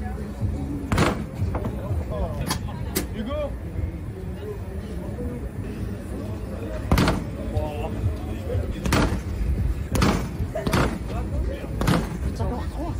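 A fist thuds hard against a punching ball.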